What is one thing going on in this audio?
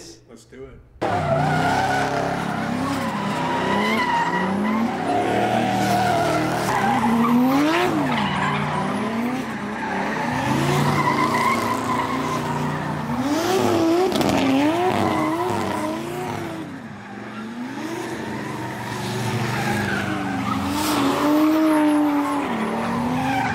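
Tyres screech loudly on pavement.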